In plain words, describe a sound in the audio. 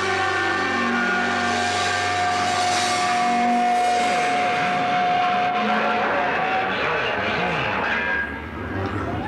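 An electric guitar rings out, distorted and loud.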